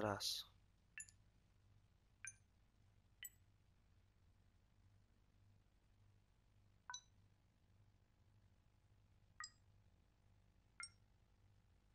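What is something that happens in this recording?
Keypad buttons give short electronic beeps, one at a time.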